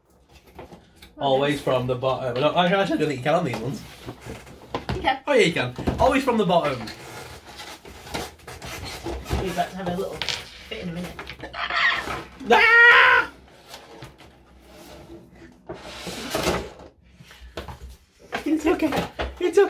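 Cardboard packaging rustles and scrapes.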